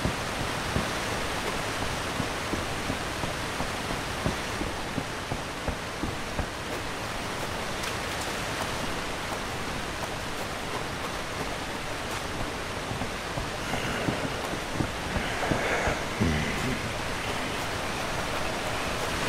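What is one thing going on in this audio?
Footsteps thud on wooden planks and earth.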